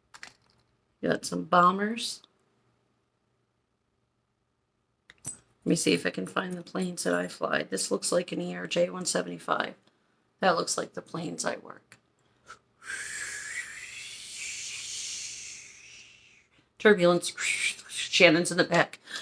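A middle-aged woman talks close to a microphone with animation.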